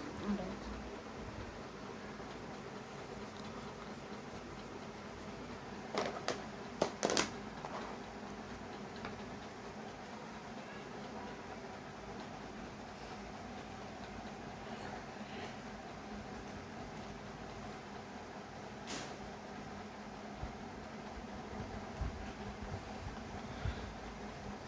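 A felt-tip marker scratches softly across paper.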